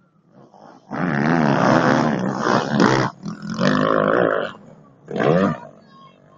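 A dirt bike engine roars and revs close by.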